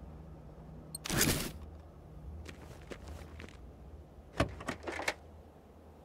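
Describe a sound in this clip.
Items rustle and clatter as a car is rummaged through.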